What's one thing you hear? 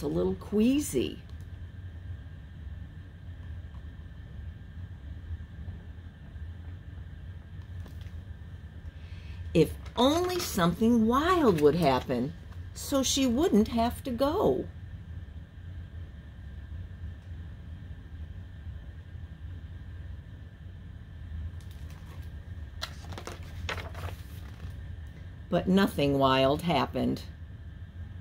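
A middle-aged woman reads aloud with lively expression, close by.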